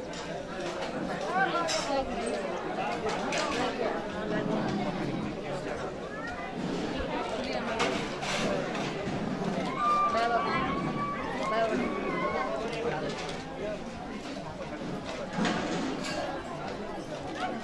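A crowd of men and women chatters close by.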